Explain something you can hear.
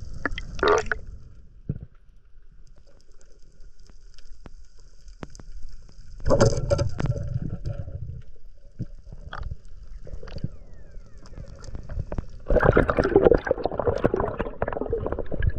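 Underwater, a diver's breath bubbles out in loud gurgling bursts.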